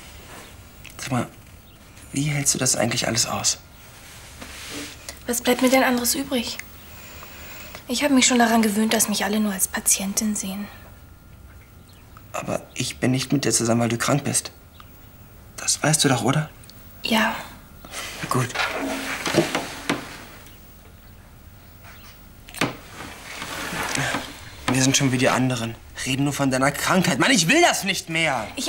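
A young man speaks calmly and earnestly, close by.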